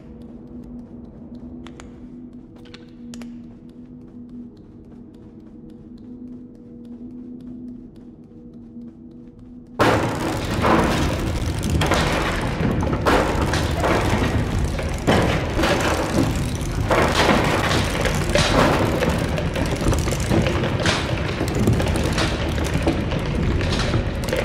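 Small footsteps patter softly on a hard floor.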